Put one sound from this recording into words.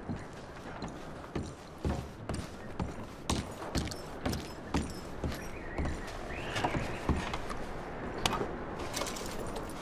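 Boots thud steadily on hollow wooden floorboards.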